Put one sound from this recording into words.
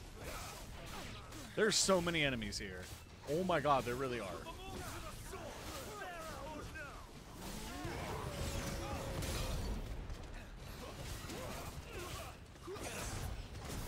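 Swords clash and blasts burst in a fast fight.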